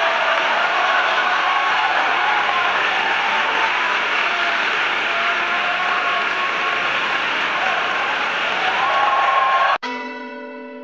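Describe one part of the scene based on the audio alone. An audience claps and cheers in a large echoing hall.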